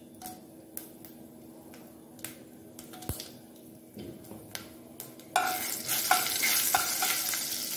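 Chillies sizzle and crackle in hot oil.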